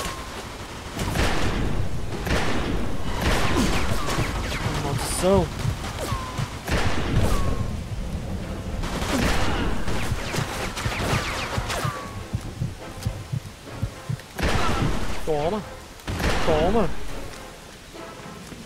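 Pistol shots crack sharply and echo outdoors.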